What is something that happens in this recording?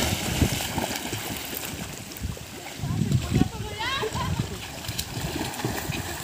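Water splashes as children swim.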